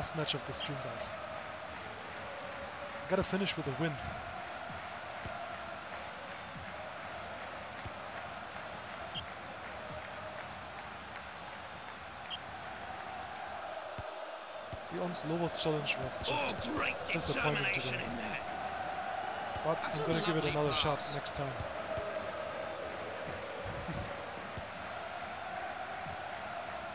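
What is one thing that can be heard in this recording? A crowd murmurs steadily.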